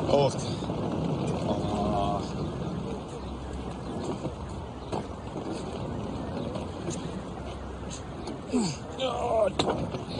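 Suitcase wheels roll over pavement.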